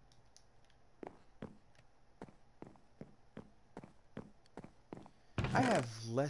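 Footsteps tap across a wooden floor.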